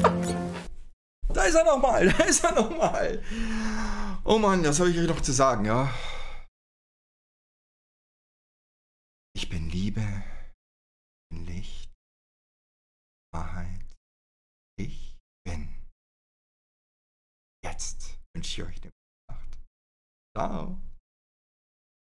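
An older man talks casually and close into a microphone, in short bursts with pauses.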